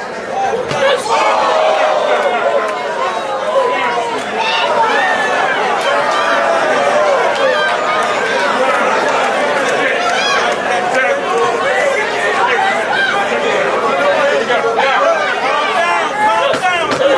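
Boxing gloves thud against a boxer.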